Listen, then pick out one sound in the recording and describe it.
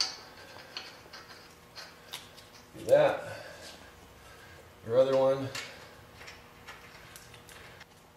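Metal parts clink and tap softly as a brake assembly is handled.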